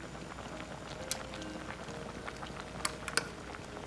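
Metal tongs clink against a pot.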